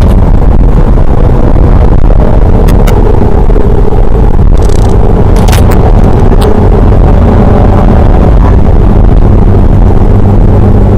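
A car engine roars loudly, close by inside the cabin.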